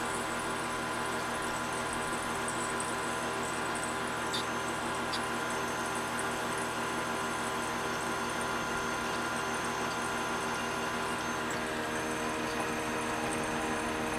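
A spinning cutter whirs against metal.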